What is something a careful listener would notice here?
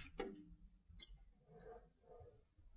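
A marker squeaks on glass.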